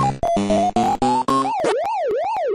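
A short electronic start-up tune plays.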